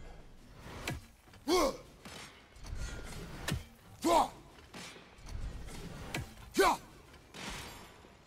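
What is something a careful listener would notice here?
An axe whooshes through the air and strikes with loud thuds.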